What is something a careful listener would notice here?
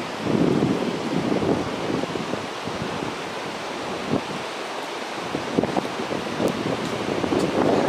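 A goat tugs at rustling leaves.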